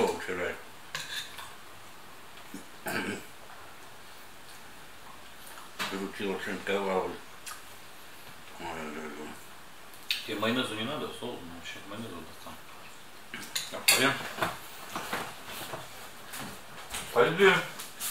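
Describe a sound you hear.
A middle-aged man talks calmly close by, with pauses.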